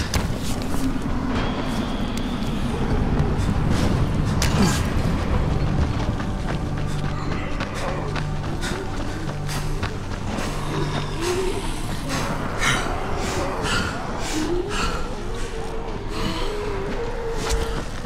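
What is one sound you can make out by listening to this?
Footsteps patter quickly over the ground.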